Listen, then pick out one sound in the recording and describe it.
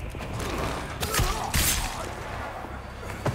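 A knife stabs into flesh with a wet thud.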